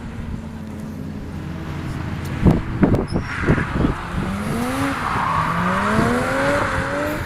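A car engine revs hard, rising in pitch again and again as it accelerates.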